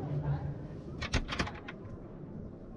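A cabinet door latch clicks and the door swings open.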